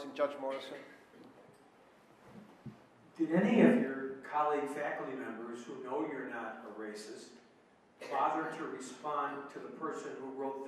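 A man speaks calmly into a microphone in a room with slight echo.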